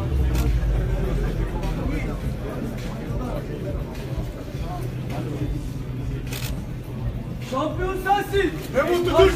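A crowd murmurs and chatters.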